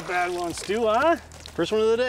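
Water splashes as a fish is lifted from a lake.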